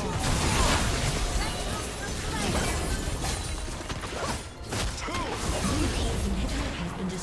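Magic blasts whoosh and crash in a busy fight.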